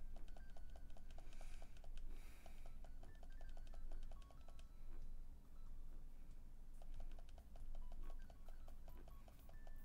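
Upbeat chiptune video game music plays with a quick, steady beat.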